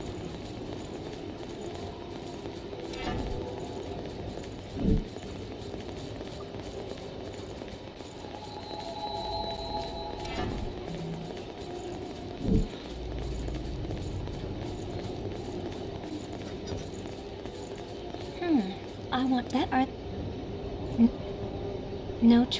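Footsteps run quickly across a stone floor.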